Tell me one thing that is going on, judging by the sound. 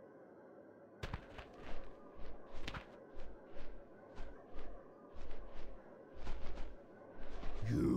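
Large wings beat in heavy, regular whooshing flaps.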